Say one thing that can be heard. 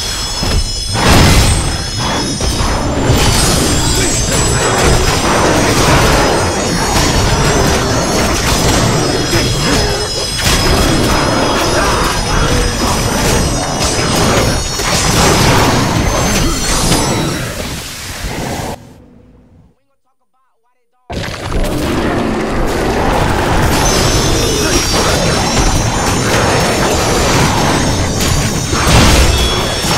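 Blades clash and slash rapidly in a fierce fight.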